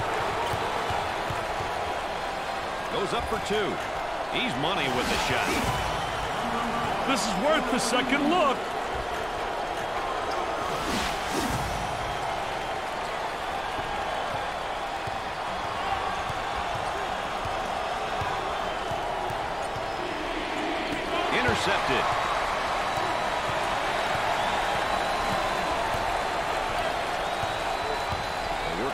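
A crowd murmurs and cheers steadily in a large arena.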